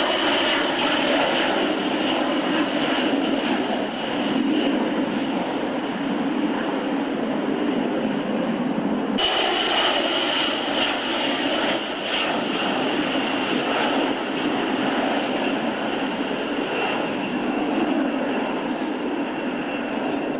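An eight-engine jet bomber roars as it climbs away at full power.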